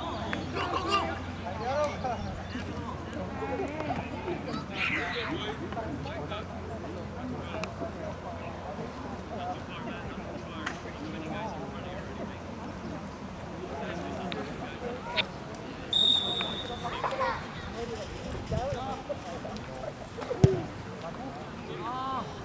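Spectators and players shout and call out across an open field.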